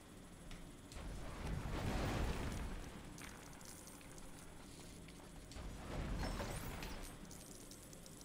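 A magical spell whooshes and crackles.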